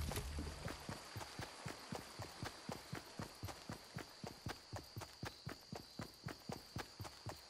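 Running footsteps pad over grass.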